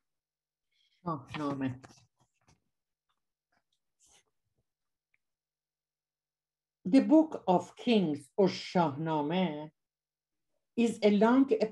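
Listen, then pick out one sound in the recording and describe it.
A woman speaks calmly through a computer microphone, with long pauses.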